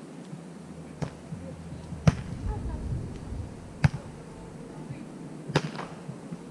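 A volleyball is struck with sharp slaps of the hands.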